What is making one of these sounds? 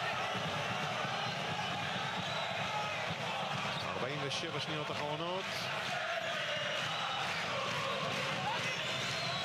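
A large crowd cheers and chants steadily in an echoing arena.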